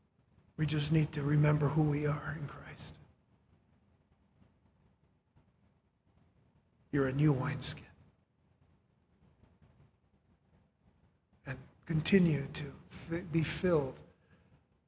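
A middle-aged man speaks with animation through a microphone, with long pauses.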